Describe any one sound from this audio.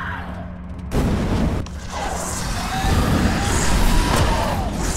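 A gun fires rapid, loud shots.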